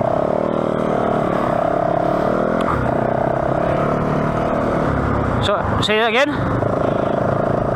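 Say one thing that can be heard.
A motorcycle engine drones steadily up close, its pitch rising and falling with the throttle.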